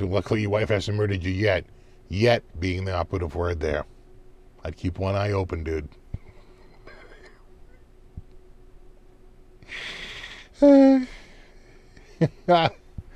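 A middle-aged man talks calmly and closely into a microphone.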